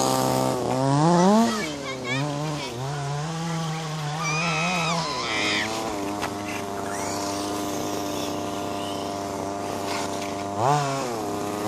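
A small engine revs up and down loudly, whining as it speeds and slows.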